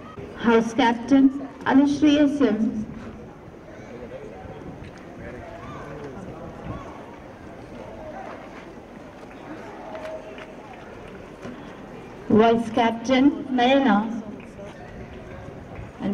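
People murmur and chatter quietly in the background outdoors.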